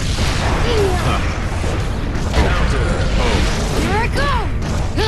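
Blows land with sharp, crunching impacts in a fast fight.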